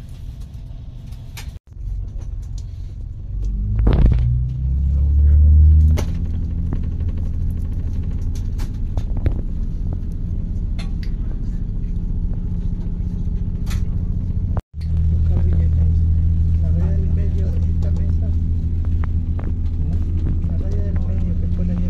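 A train rumbles and hums steadily as it rolls along the tracks.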